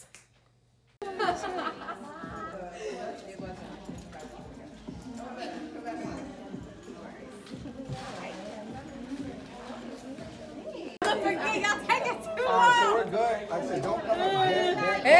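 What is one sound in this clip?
Several women chatter in a lively crowd.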